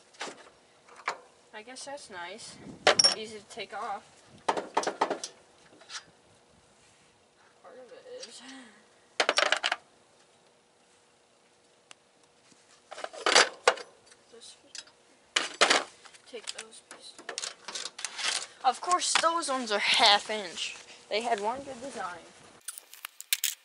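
Metal tools clink and clatter against a mower deck.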